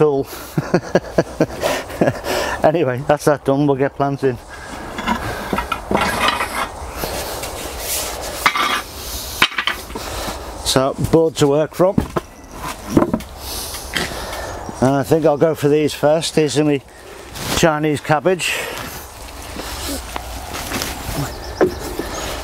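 A middle-aged man talks calmly nearby.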